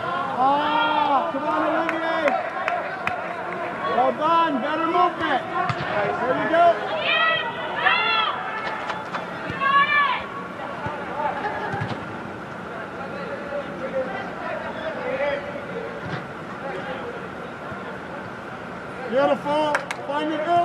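Young men shout to each other across a large echoing hall.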